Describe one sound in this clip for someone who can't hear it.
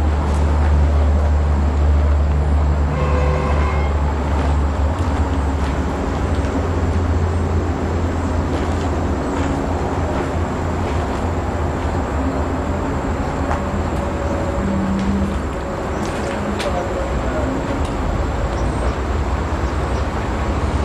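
A distant train rumbles closer along the tracks.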